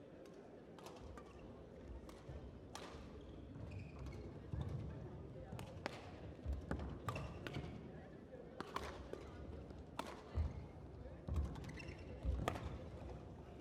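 Rackets hit a shuttlecock back and forth in a sharp, quick rhythm.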